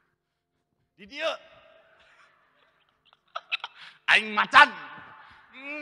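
A young man speaks with emotion into a microphone, heard with an echo.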